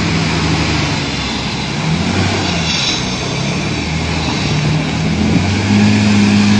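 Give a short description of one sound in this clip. A heavy vehicle's diesel engine rumbles and drones close by.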